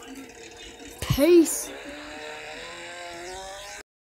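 A motorbike engine revs up loudly, then hums steadily.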